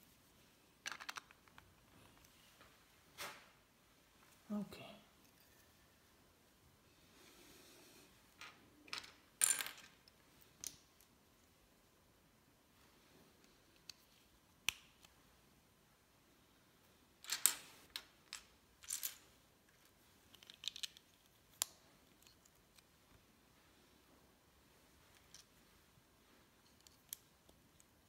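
Plastic toy bricks click and clatter as they are snapped together and picked up.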